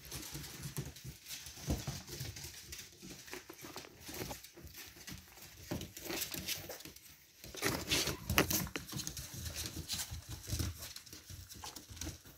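Puppies growl playfully.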